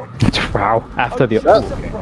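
A gun fires a sharp shot.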